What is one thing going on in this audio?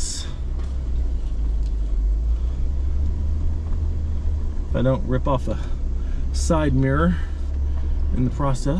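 A vehicle engine rumbles low and steady while driving slowly over rough ground.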